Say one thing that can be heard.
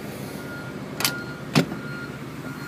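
A car boot lid slams shut with a sharp thud.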